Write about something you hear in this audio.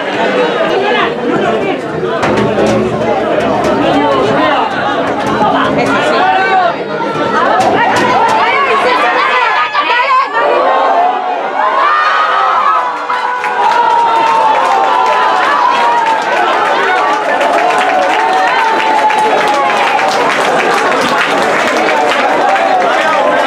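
A crowd of spectators cheers and shouts close by outdoors.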